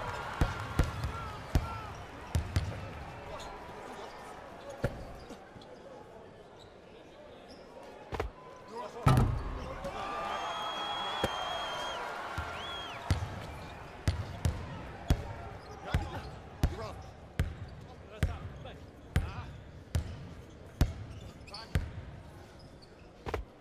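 A basketball bounces on a hard court in steady dribbles.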